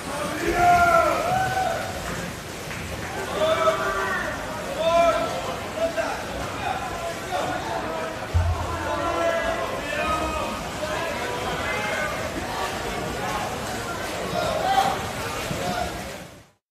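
A crowd of young people cheers and shouts loudly in an echoing indoor hall.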